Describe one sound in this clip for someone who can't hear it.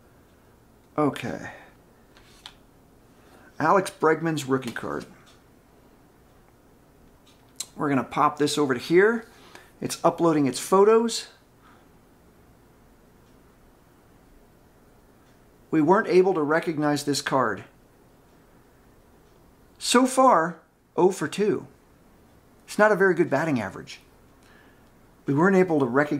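A middle-aged man talks calmly close by, with pauses.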